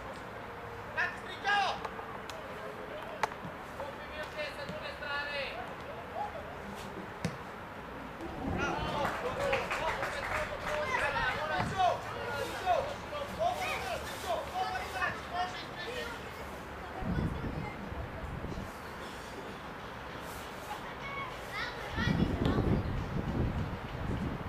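Children shout to each other outdoors on an open field.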